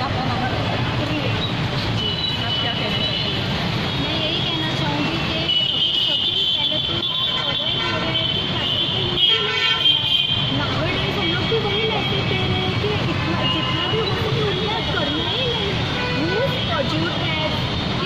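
Another young woman answers into a microphone with animation.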